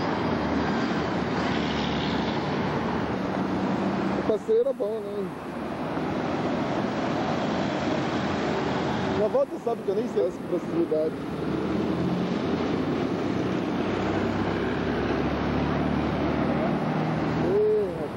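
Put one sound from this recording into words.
A bus engine roars as it passes close by.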